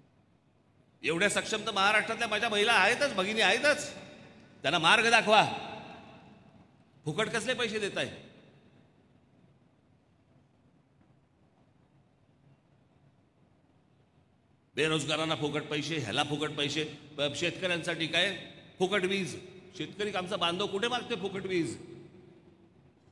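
A middle-aged man forcefully addresses a crowd through a microphone and loudspeakers.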